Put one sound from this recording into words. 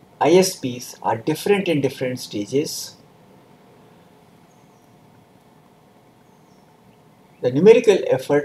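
An older man speaks calmly and clearly into a close microphone, pausing between phrases.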